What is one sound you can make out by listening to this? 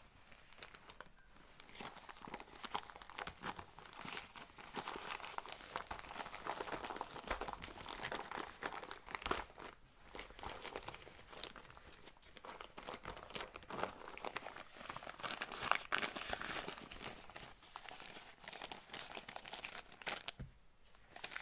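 Newspaper rustles and crinkles as it is rolled and folded.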